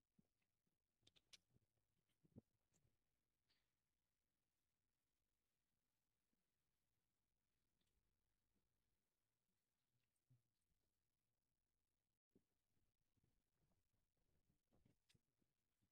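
Traffic hums faintly in the distance.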